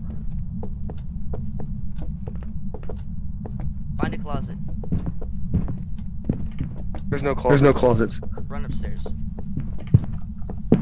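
Footsteps thud steadily on a wooden floor.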